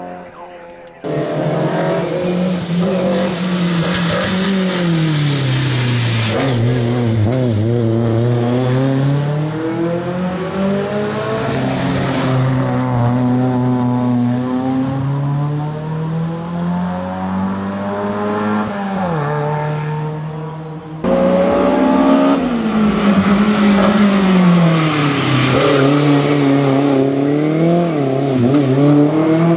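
A racing car's engine revs hard close by, its pitch rising and falling as it shifts gears.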